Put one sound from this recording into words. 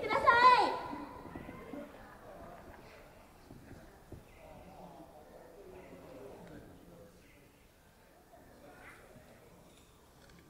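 Young women talk quietly among themselves at a distance.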